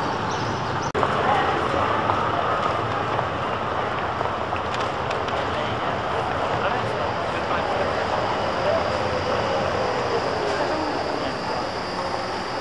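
A trolleybus drives past with a falling electric motor whine.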